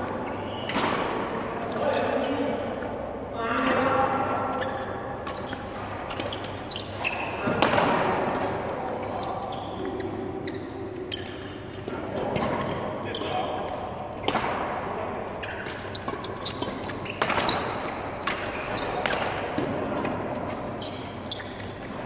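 A large hall echoes.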